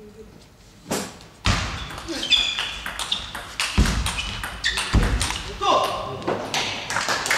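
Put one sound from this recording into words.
A table tennis ball clicks sharply back and forth off paddles and the table.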